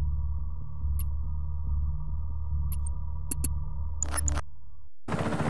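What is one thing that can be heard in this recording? Menu selections click softly.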